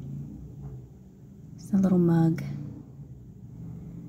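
A ceramic mug is set down on a shelf with a light knock.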